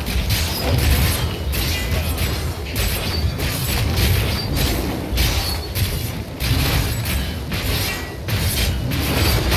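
Heavy magical impacts thud repeatedly.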